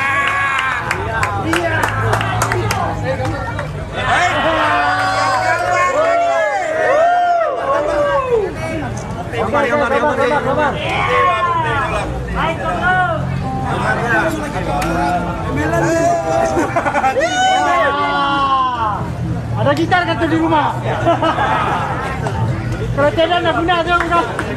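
A bass guitar plays a steady low line.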